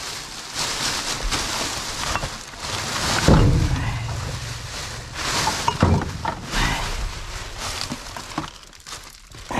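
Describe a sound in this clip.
Plastic bin bags rustle and crinkle as they are pulled about.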